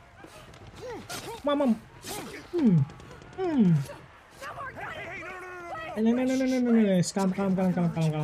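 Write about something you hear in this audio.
A young woman pleads and cries out in panic.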